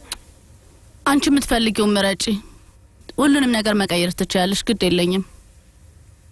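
A teenage girl speaks.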